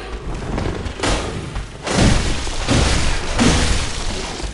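Blades slash through the air and strike with heavy, wet thuds.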